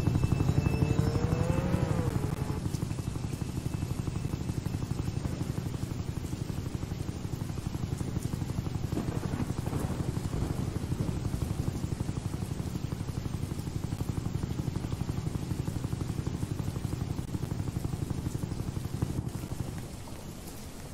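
Helicopter rotor blades thump steadily overhead.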